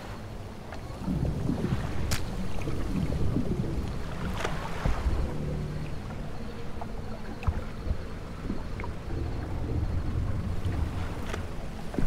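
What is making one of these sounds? A small boat engine rumbles steadily.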